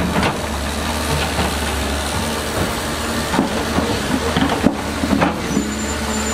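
Stones knock and clunk under an excavator's bucket.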